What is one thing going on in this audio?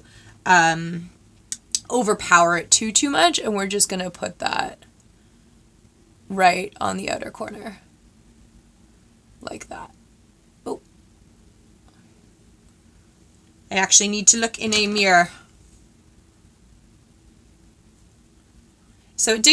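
A young woman talks casually and close to a microphone, in short bursts with pauses.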